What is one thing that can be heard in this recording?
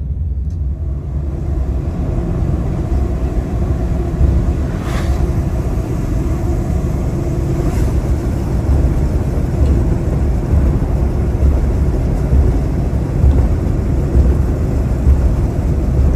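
Tyres hiss on a wet road, louder as the car speeds up.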